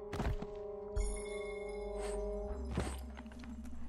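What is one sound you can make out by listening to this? A bright chime rings as an item is picked up.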